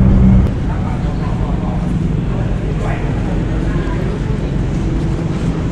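A crowd murmurs in a busy echoing hall.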